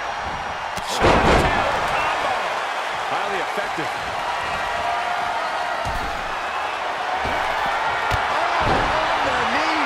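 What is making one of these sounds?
A heavy thud of a body slamming onto a canvas mat.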